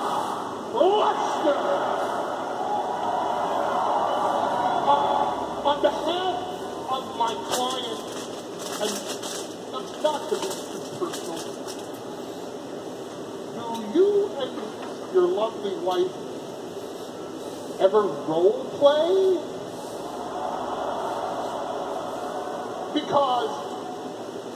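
A middle-aged man talks casually, close by.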